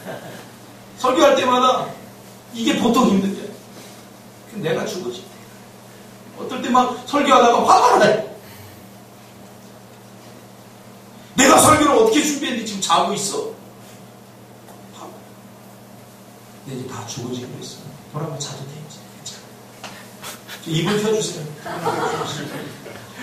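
A young man speaks with emphasis into a microphone in a slightly echoing room, pausing between phrases.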